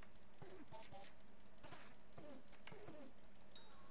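A sword strikes a creature several times.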